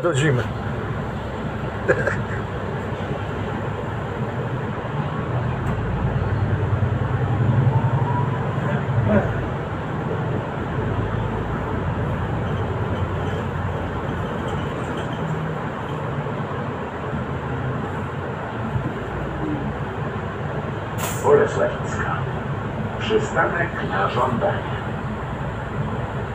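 The bus body rattles and clatters over bumps.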